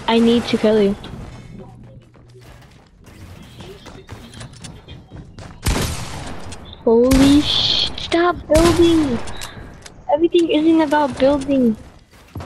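Video game walls crack and shatter.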